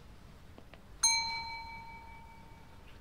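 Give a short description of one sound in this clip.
A mobile phone chimes a short notification tone.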